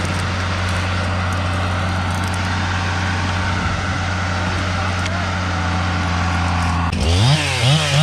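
A heavy machine's diesel engine rumbles steadily nearby.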